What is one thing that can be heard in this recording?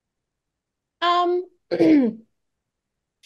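A woman exclaims briefly over an online call.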